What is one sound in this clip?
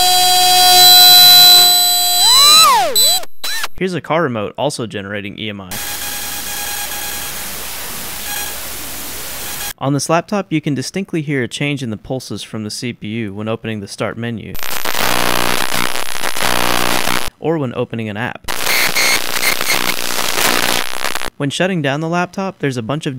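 A handheld electronic gadget plays warbling, beeping synthesized sounds in short bursts.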